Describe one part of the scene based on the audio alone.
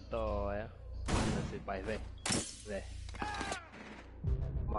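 Gunshots crack from a rifle.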